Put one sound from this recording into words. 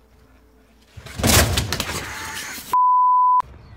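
A skateboard clatters and rolls down a wooden ramp.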